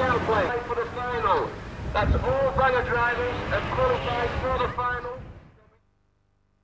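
A racing car engine roars and whines as it revs.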